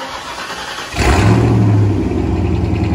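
A car engine fires up with a loud roar.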